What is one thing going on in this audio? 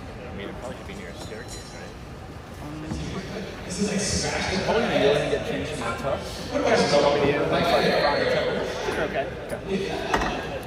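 Men talk nearby in a large echoing hall.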